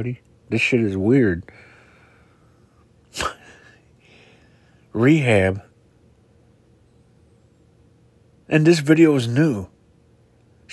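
A middle-aged man speaks in short bursts, close to a phone microphone.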